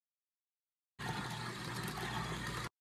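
A steam wand hisses and gurgles into milk.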